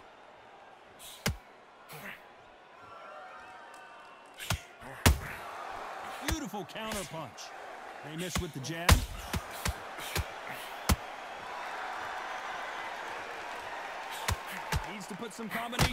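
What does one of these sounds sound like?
A crowd cheers and roars.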